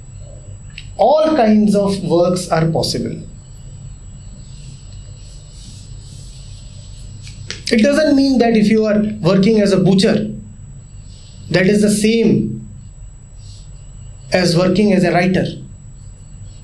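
A middle-aged man speaks calmly and deliberately through a microphone, with pauses between phrases.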